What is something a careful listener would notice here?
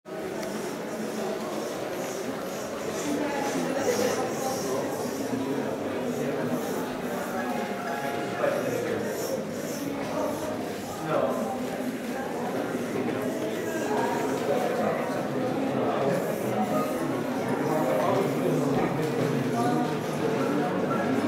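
A crowd of young men and women chatter around the listener in a busy room.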